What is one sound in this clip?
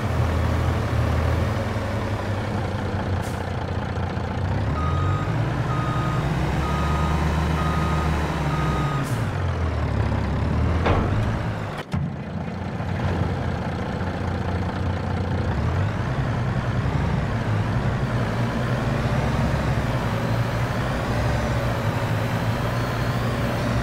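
A heavy diesel truck engine rumbles and revs.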